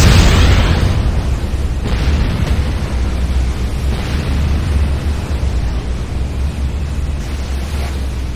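Electric crackling buzzes and snaps.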